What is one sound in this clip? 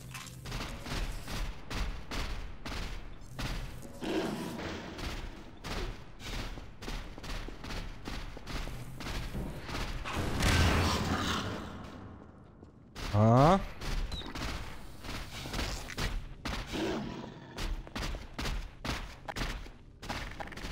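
Insect-like creatures skitter and click their legs across the floor.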